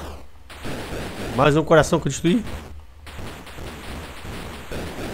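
Retro video game sound effects blip and buzz.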